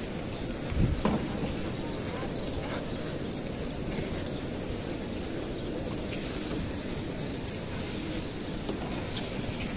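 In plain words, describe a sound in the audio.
A large crowd murmurs and chatters all around outdoors.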